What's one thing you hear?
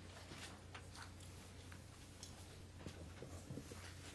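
Paper rustles near a microphone.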